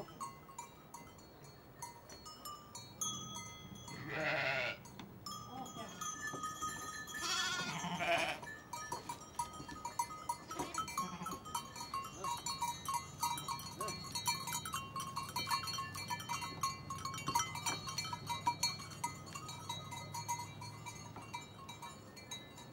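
Sheep hooves shuffle and rustle through straw.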